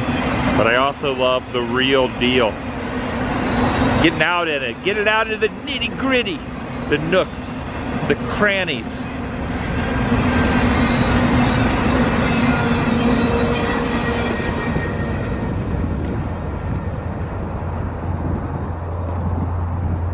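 A long freight train rumbles steadily past in the distance.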